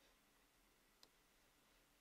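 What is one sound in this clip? A tool is set down with a light click on a wooden table.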